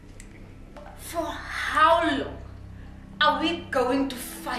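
A young woman speaks with feeling close by.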